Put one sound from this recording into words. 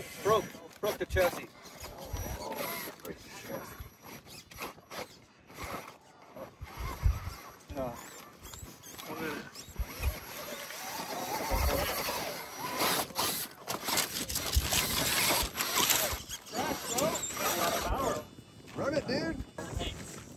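A small electric motor whines.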